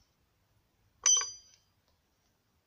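A wooden board knocks sharply once.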